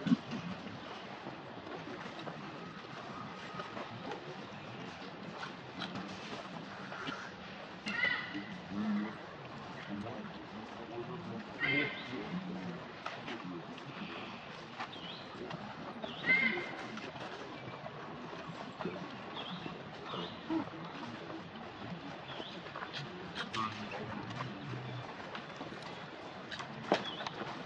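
Cardboard crinkles as a monkey grips a juice carton.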